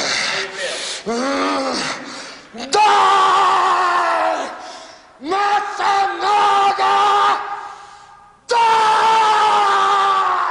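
A man groans and wails in long, drawn-out, agonised cries close by.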